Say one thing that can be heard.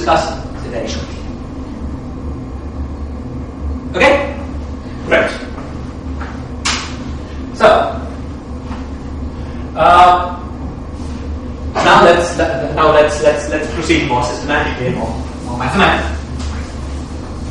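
A young man lectures calmly.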